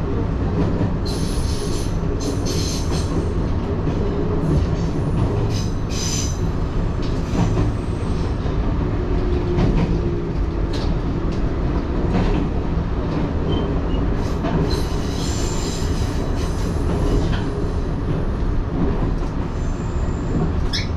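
Wheels clatter and squeal on the track.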